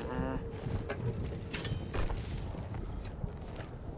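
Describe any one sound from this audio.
A shovel scrapes and digs into rocky ground.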